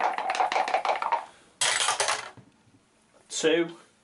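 Dice clatter as they are rolled into a tray.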